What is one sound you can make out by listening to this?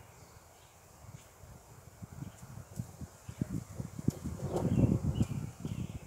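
A horse trots on grass with dull, rhythmic hoof thuds close by.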